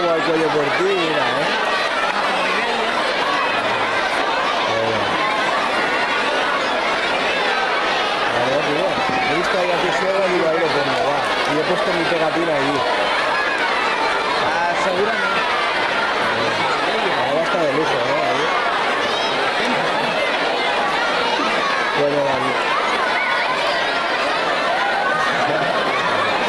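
Feet shuffle and stamp on a wooden floor as a crowd dances.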